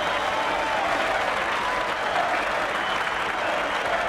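A large crowd cheers and claps in a stadium.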